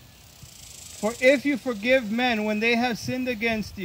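A man speaks calmly into a microphone outdoors.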